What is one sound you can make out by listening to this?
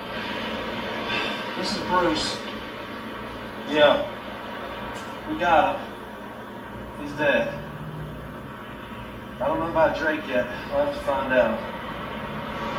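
A man speaks in short bursts, heard through a loudspeaker.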